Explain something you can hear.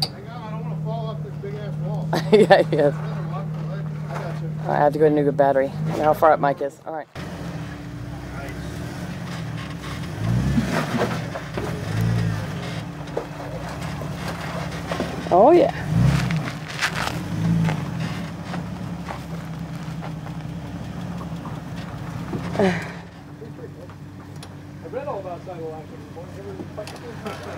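A truck engine rumbles low as the truck crawls over rocks.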